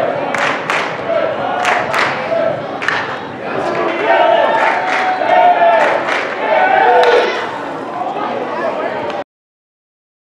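Players shout and cheer from the dugout.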